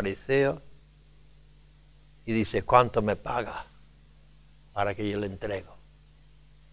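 An elderly man preaches slowly and emphatically into a microphone, with long pauses.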